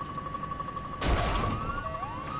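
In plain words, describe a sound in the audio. A loud blast booms as the helicopter is hit.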